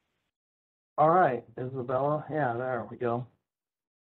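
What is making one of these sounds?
A man speaks calmly through an online call.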